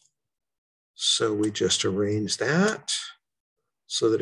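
An elderly man talks calmly into a microphone, close by.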